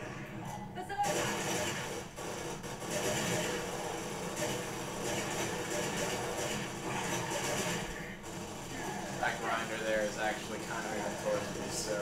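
Video game gunfire rattles from television speakers.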